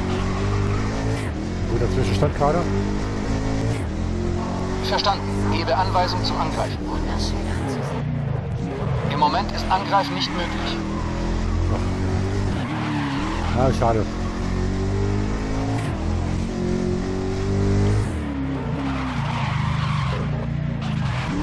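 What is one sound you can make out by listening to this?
A racing car engine roars, its pitch climbing and dropping sharply with each gear change.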